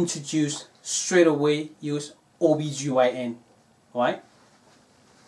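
A man speaks calmly and clearly to a close microphone.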